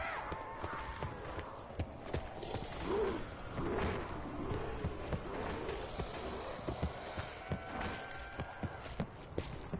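Footsteps thud steadily on hard floors and wooden planks.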